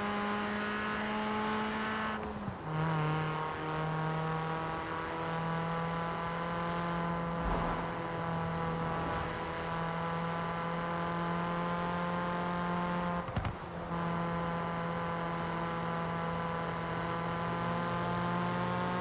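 Tyres hiss on asphalt.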